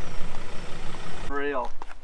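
A truck engine rumbles as the truck drives slowly along a dirt track.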